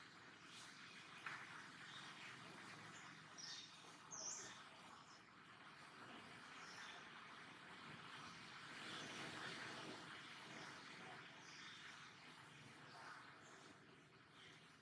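A monkey's fingers rustle softly through fur.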